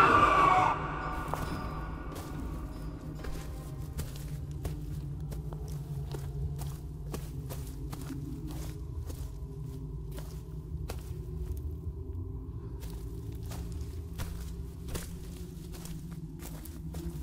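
Soft footsteps tap at an uneven pace.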